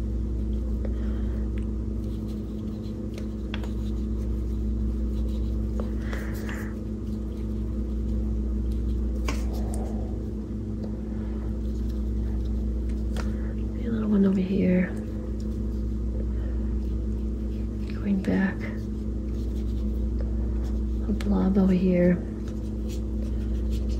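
A paintbrush strokes softly across paper.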